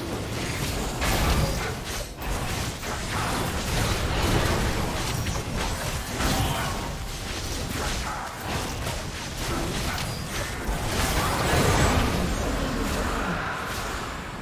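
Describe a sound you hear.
Weapons clash and strike repeatedly.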